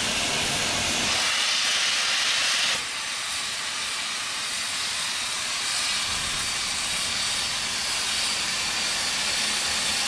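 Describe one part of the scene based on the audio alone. Steam hisses loudly from a locomotive's cylinder cocks.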